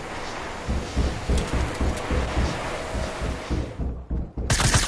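Quick footsteps thud on a wooden floor.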